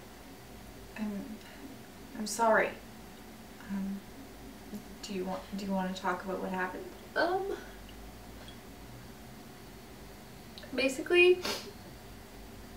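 Another young woman speaks calmly close by.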